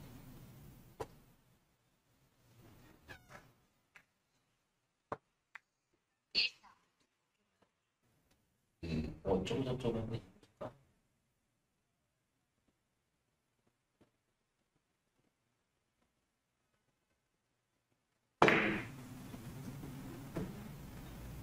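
Billiard balls knock together with hard clicks.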